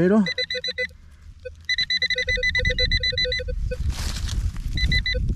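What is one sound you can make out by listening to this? A handheld electronic device beeps rapidly in short bursts.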